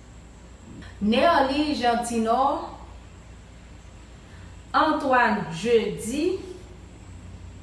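A young woman speaks calmly and close by in short phrases.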